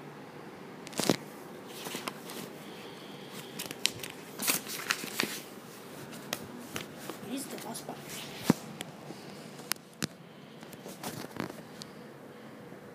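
Paper pages rustle and flip as a book is handled.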